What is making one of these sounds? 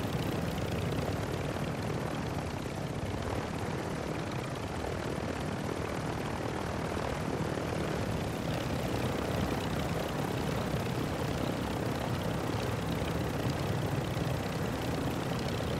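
A helicopter's rotor thumps and its engine roars steadily.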